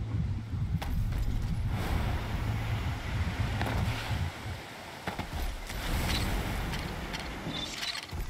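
Heavy footsteps thud through rustling undergrowth.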